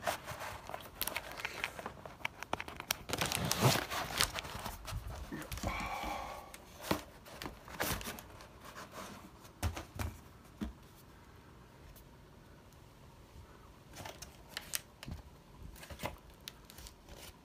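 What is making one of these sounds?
Plastic air packaging crinkles and rustles in a hand.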